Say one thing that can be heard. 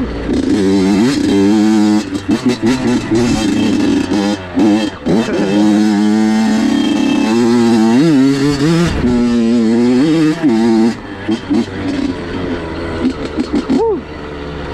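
Tyres crunch over a rocky dirt trail.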